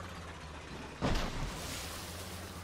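A tractor crashes into water with a loud splash.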